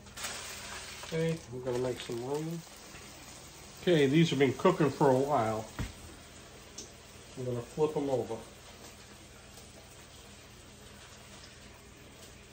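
Food sizzles softly in a frying pan.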